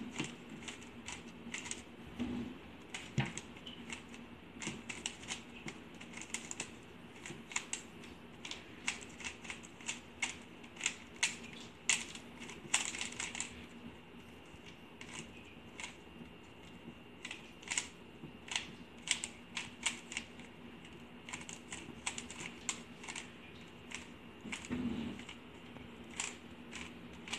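A plastic puzzle cube clicks and clacks quickly as its layers are turned.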